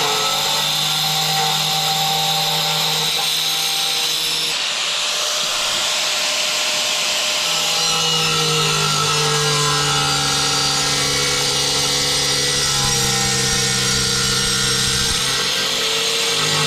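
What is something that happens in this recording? An angle grinder whines as it cuts through porcelain tile.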